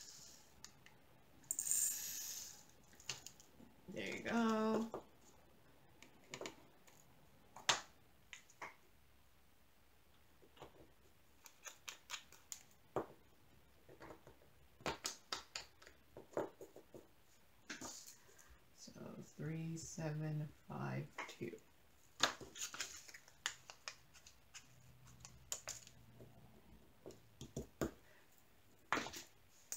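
Small plastic containers click and tap on a table.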